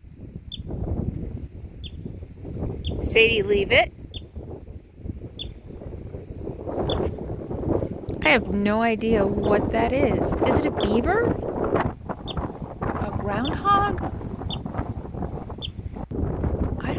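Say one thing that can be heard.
A marmot gives short, sharp whistling chirps at regular intervals.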